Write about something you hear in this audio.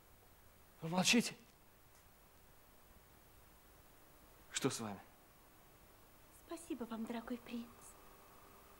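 A young woman speaks briefly and softly.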